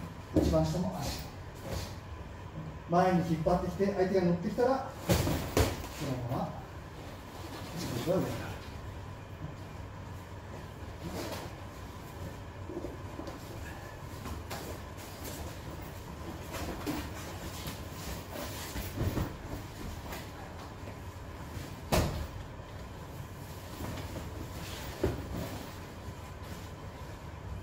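Bodies thud and shuffle on a mat.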